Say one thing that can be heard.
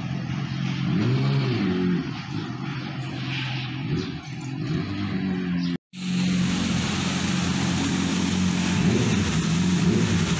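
A motorcycle engine revs up briefly and settles back.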